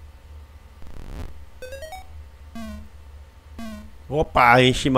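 Short electronic game beeps chirp in quick bursts.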